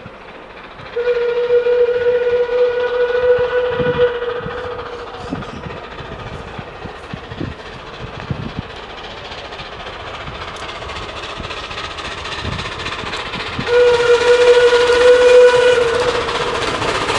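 A steam locomotive whistle blows long and loud, twice.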